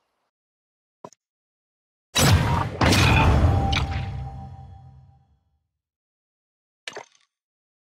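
A menu click sounds.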